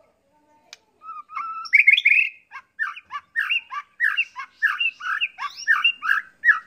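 A songbird sings a rich, varied run of whistles and chirps close by.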